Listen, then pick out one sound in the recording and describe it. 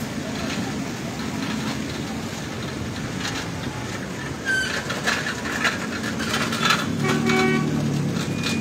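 A car drives slowly across a wet road, its tyres hissing on the water.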